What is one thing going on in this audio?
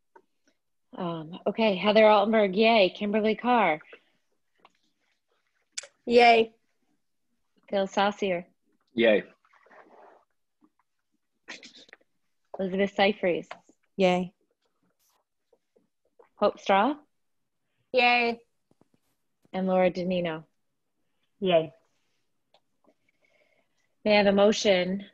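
A woman speaks calmly over an online call, in short bursts.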